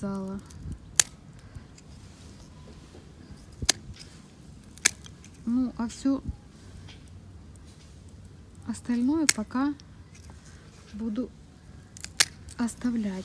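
Pruning shears snip through thin stems with sharp clicks.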